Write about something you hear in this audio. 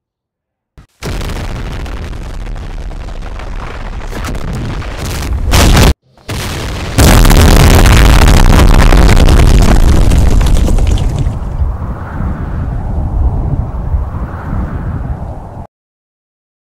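A loud roaring blast rumbles and crashes.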